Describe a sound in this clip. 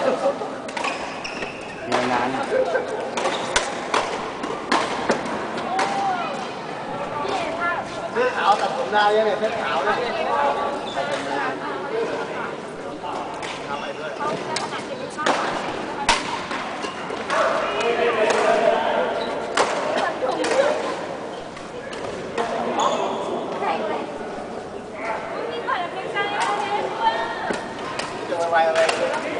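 Men chatter and call out in a large echoing hall.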